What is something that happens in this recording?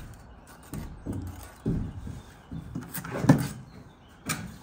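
Loose bricks scrape and knock as they are pulled from a wall.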